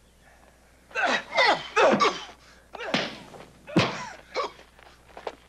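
Fists land hard punches in a brawl.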